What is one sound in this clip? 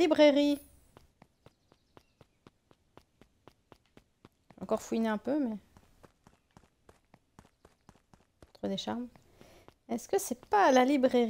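Light footsteps patter quickly on a path.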